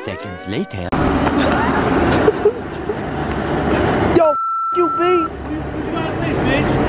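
A young man shouts.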